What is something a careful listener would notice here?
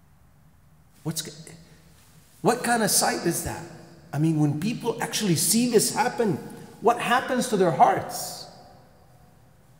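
A middle-aged man speaks with animation through a microphone in a reverberant hall.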